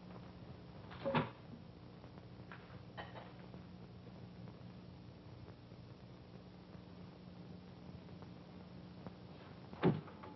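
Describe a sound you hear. Dishes clink and clatter.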